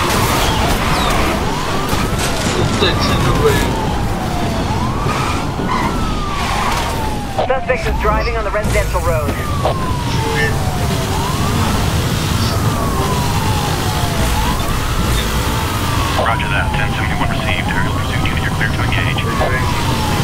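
A racing car engine roars and revs at high speed.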